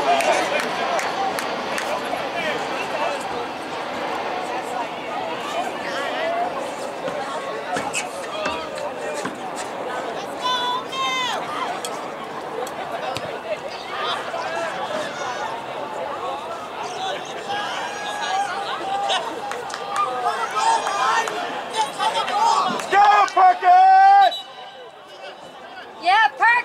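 Players shout across an open field.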